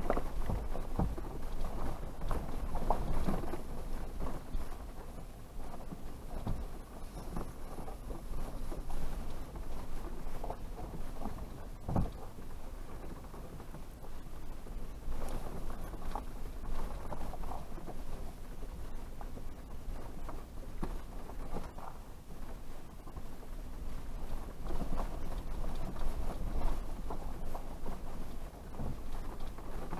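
A vehicle body creaks and knocks over bumps.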